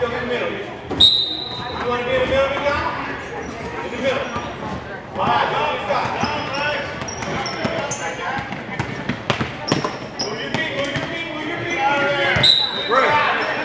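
A referee blows a sharp whistle.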